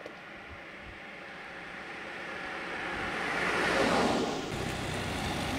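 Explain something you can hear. A car approaches and speeds past close by.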